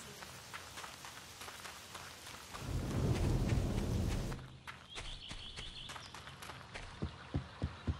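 Footsteps run along a dirt path.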